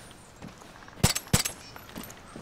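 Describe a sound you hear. Two pistol shots ring out in quick succession.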